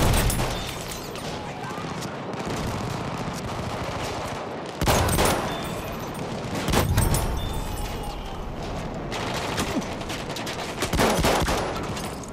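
Gunshots fire in rapid bursts, echoing in a tunnel.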